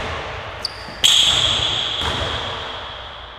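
A basketball rim rattles and clangs as a player dunks.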